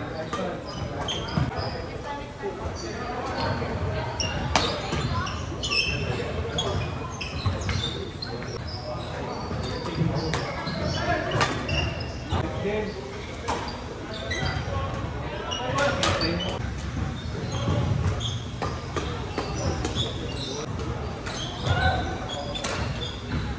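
Badminton rackets strike a shuttlecock with sharp pops, echoing in a large hall.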